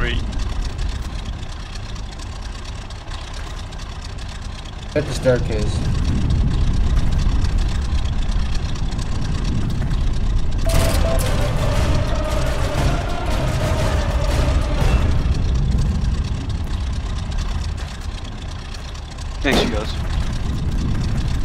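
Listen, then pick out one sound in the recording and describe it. A propeller engine rumbles steadily close by.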